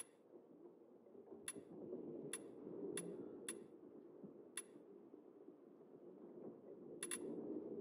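Menu selections click softly, one after another.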